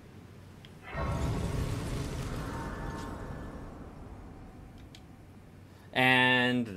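A shimmering chime swells and slowly fades.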